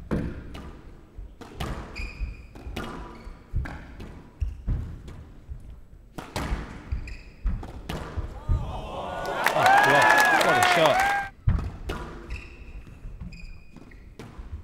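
A squash ball smacks sharply off rackets and walls in an echoing hall.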